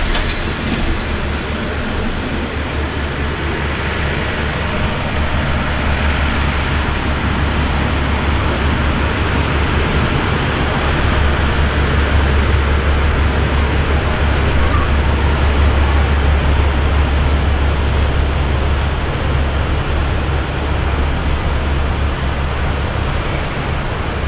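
A train rumbles away along the tracks and slowly fades.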